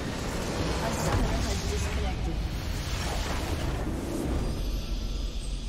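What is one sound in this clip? A large game structure explodes with a deep rumbling blast.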